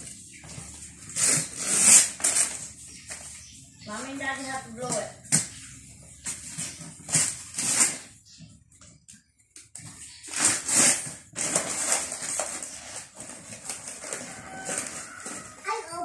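Wrapping paper rustles and crinkles close by.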